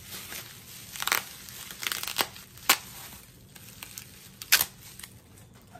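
Something crinkles and clicks as it is handled.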